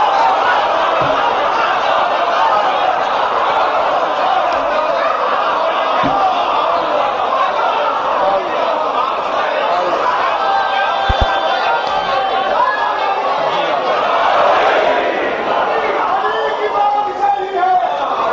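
A man recites loudly and with feeling into a microphone, echoing through loudspeakers in a large hall.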